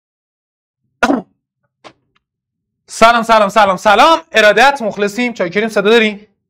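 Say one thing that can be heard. A young man speaks animatedly into a close microphone.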